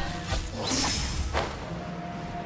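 A sharp swoosh sounds.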